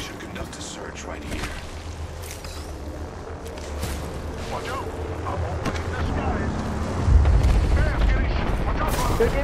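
Footsteps thud on ground and wooden planks.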